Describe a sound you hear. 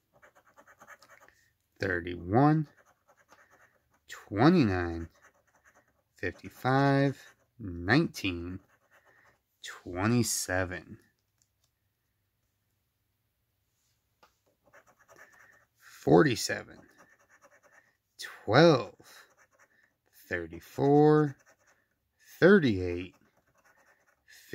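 A coin scratches across a lottery ticket.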